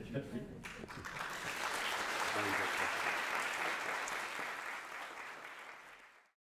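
A man claps his hands along with applause.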